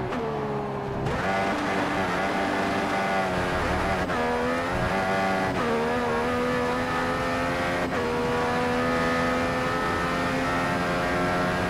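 A racing car engine screams at high revs, rising in pitch and dropping sharply with each gear change.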